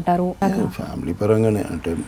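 A man speaks calmly and close through a microphone.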